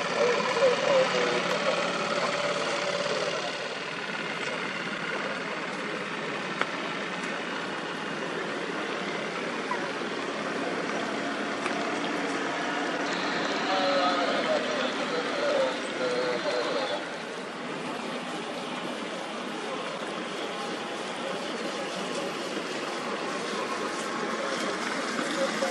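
Water churns and splashes against a hull.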